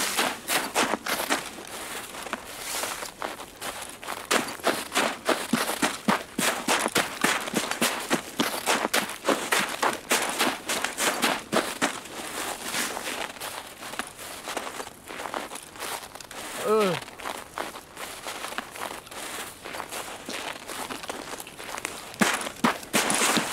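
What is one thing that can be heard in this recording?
Footsteps crunch and rustle through snow and dry grass at a steady walking pace.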